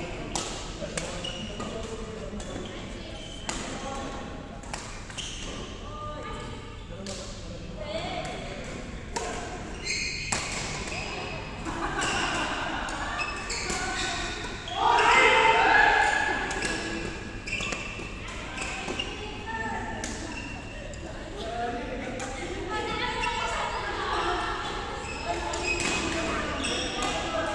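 Rackets hit a shuttlecock with sharp pops in a large echoing hall.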